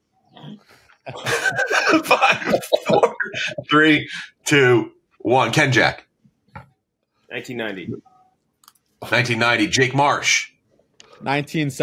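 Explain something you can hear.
Several men talk and laugh with animation over an online call.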